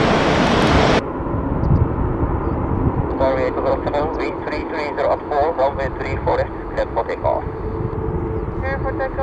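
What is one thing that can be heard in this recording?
Jet engines whine steadily as an airliner taxis slowly.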